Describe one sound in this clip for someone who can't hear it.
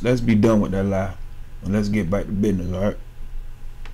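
A man speaks calmly and close up, heard through a phone recording.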